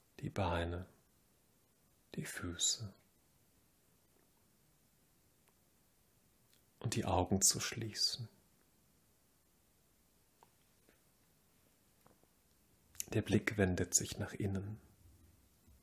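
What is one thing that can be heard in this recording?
A man speaks calmly and slowly, with pauses, in a room with a slight echo.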